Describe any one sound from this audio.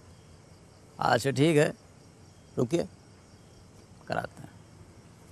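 A young man speaks tensely into a phone in short bursts.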